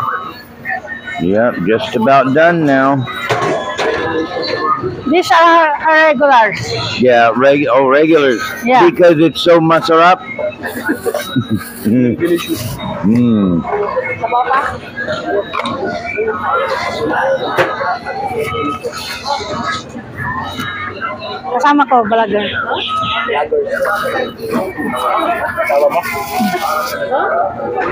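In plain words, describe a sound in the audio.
Several people chatter in the background.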